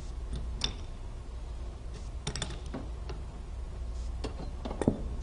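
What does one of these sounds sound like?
A metal hand tool clicks against a cable fitting.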